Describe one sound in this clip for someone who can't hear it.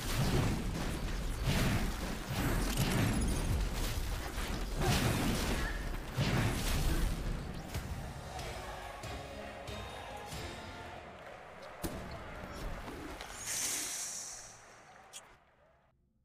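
Loud game battle sounds crash and blast in quick bursts, then fade away.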